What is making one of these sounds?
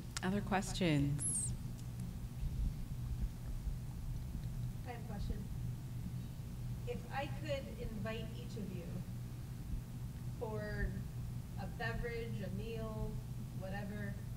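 A woman speaks calmly into a microphone, heard through a loudspeaker.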